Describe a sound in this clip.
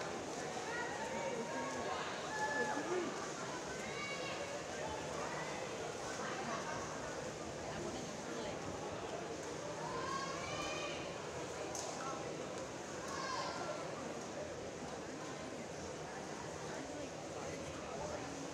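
Swimmers splash through the water.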